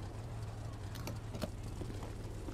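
A car door opens with a click and a thud.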